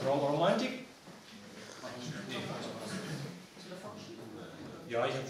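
A second young man speaks quietly in reply.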